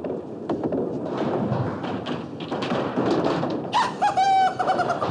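A bowling ball rumbles down a wooden lane in a large echoing hall.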